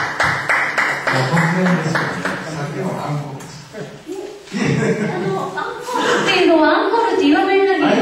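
A young woman sings into a microphone through a loudspeaker.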